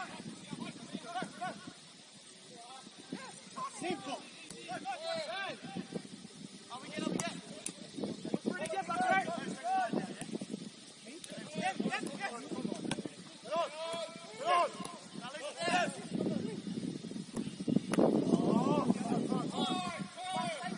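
Young men shout and call to each other outdoors, some distance away.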